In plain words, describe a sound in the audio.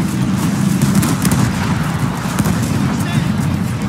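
Explosions boom and rumble in the distance.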